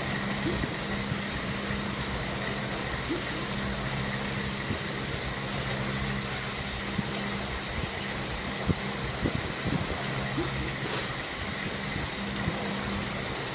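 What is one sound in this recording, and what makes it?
A stationary bike trainer whirs steadily under pedalling.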